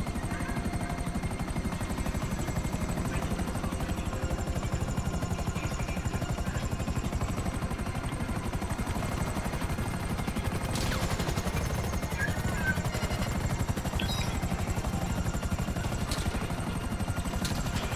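Helicopter rotor blades thump rapidly and steadily close by.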